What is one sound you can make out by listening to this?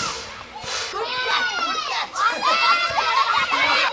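Children shout and laugh excitedly outdoors.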